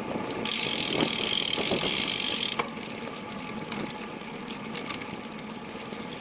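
Footsteps scuff on a paved road outdoors.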